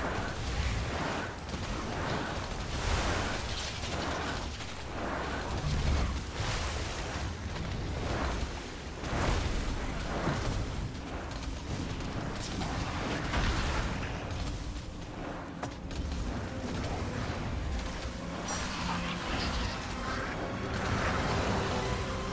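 Magic spells whoosh and crackle in rapid bursts.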